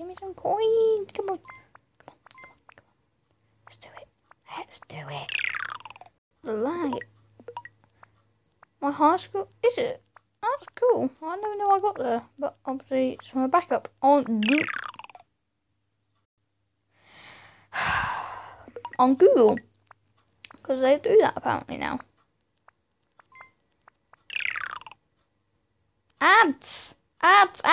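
A young boy talks excitedly and close to a microphone, in bursts with pauses.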